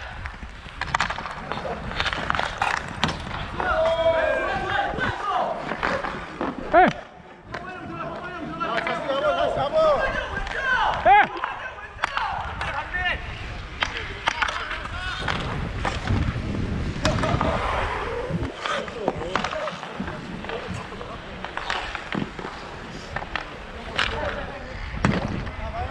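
Inline skate wheels roll and scrape over a hard outdoor rink.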